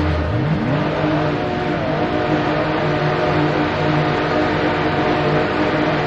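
Racing car engines drone steadily at high revs.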